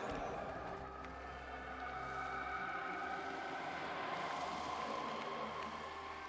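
Calm background music plays steadily.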